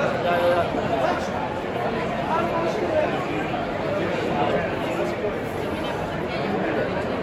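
A crowd of men and women chatters loudly outdoors.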